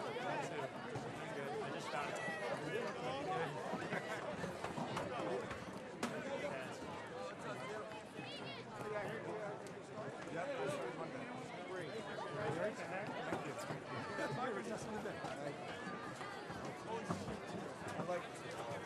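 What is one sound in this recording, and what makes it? A large outdoor crowd chatters and cheers steadily.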